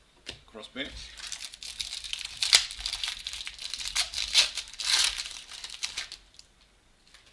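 A plastic wrapper crinkles and rustles loudly.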